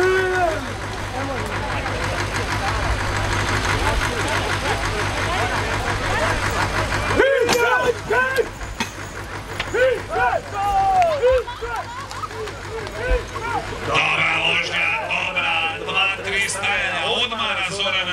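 Men shout loudly, urging on horses.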